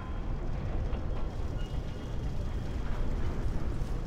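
A heavy stone door grinds slowly open.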